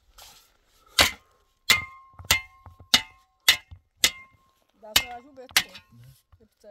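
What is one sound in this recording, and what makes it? A shovel clinks sharply against stones.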